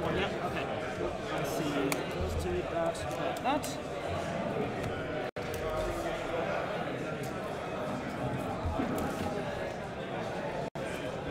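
A crowd of people chatter in a busy room.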